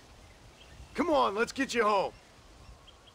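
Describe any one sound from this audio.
A man answers in a loud, rough voice.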